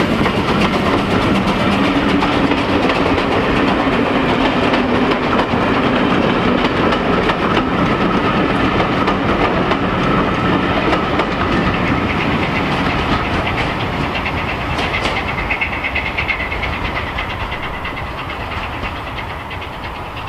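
Train carriages rumble and clatter over the rails, slowly fading into the distance.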